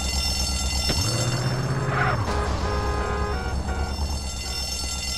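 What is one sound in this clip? A truck engine revs and roars, then fades.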